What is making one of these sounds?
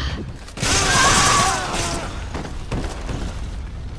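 A body thuds onto dirt ground.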